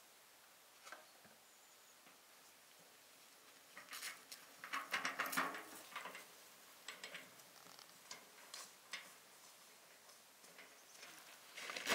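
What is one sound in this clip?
A wheelbarrow rattles as it is pushed over grass.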